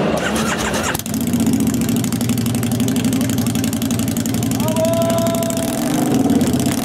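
A motorcycle engine starts and idles with a loud, throbbing rumble.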